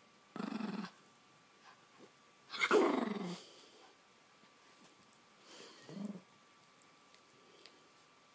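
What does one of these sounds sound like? A puppy chews and tugs at yarn.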